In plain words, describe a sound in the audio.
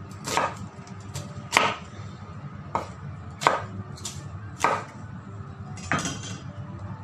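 A knife chops onion on a wooden board with sharp knocks.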